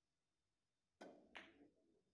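A cue strikes a billiard ball with a sharp knock.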